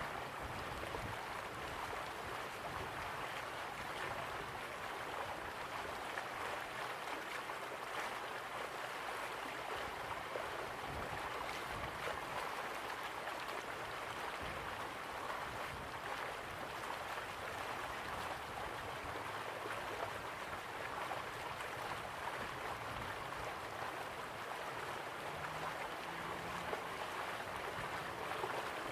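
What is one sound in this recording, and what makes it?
A stream rushes over rocks.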